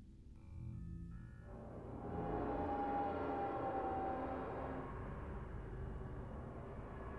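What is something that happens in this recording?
A portal gun hums with a low, steady electric drone.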